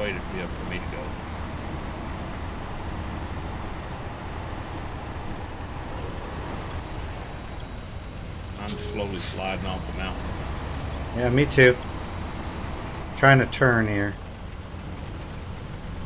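A heavy truck engine rumbles and strains steadily.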